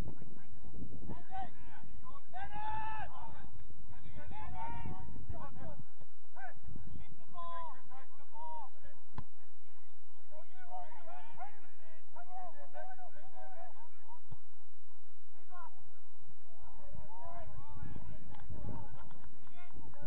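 Young men shout to each other across an open field in the distance.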